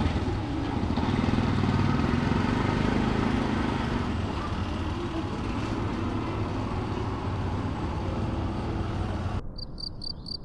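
An auto rickshaw engine putters as it drives away and fades into the distance.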